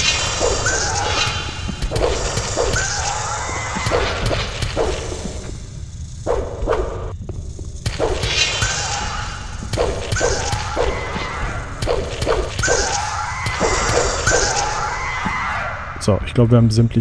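Giant spiders hiss and screech as they attack.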